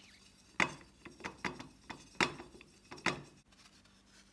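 A brush taps and scrubs in a metal paint tin.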